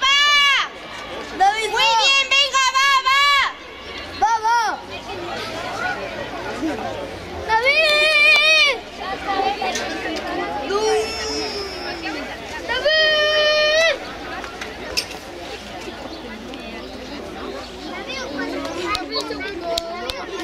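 A crowd murmurs and chatters in the background outdoors.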